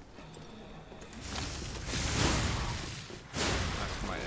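Fire bursts with a loud roar.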